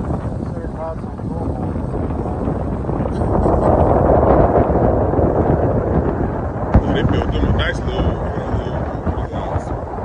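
Wind blows hard across open water outdoors.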